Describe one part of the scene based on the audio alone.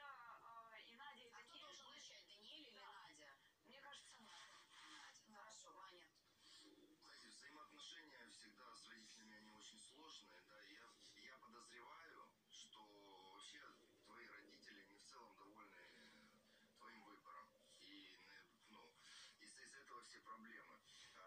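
A young woman speaks with emotion, heard through a television speaker.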